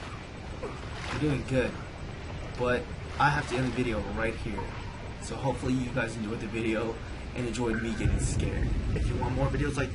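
A young man talks with animation into a close headset microphone.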